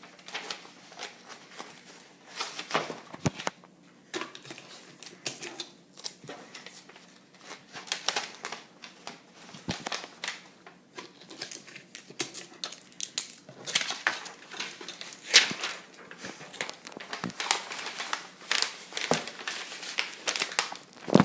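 Paper rustles and crinkles as it is folded and handled close by.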